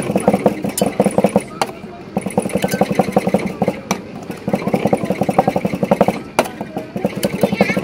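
Metal spatulas chop rapidly against a cold metal plate.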